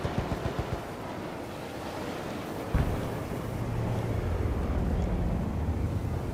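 Wind rushes loudly past a falling parachute.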